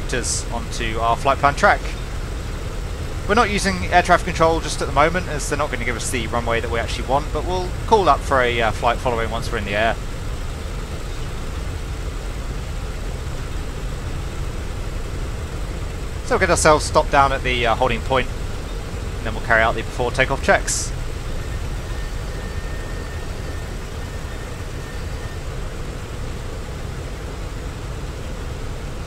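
An aircraft engine hums steadily while taxiing.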